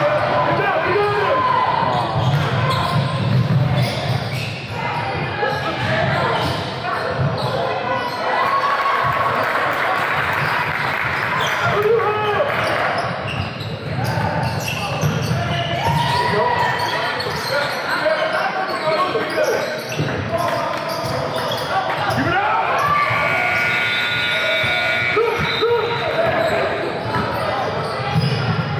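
Teenage players shout to each other across an echoing gym.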